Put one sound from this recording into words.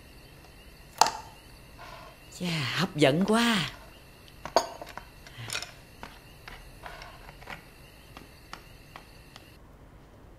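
Dishes clink on a table.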